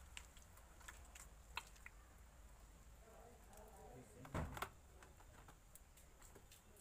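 Wet cement squelches and slaps as a hand packs it onto bricks.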